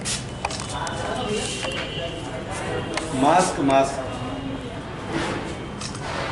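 Papers rustle as a man handles a stack of files.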